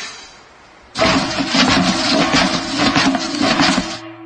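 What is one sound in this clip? Tissues are pulled rapidly from a box.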